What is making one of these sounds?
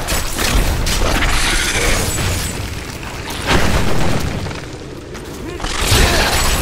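Weapon strikes hit a creature with heavy thuds.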